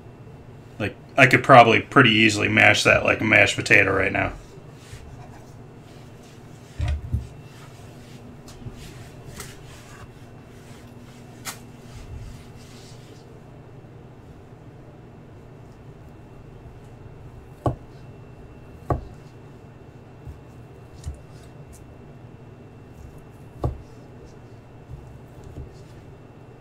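A knife taps and chops on a wooden board.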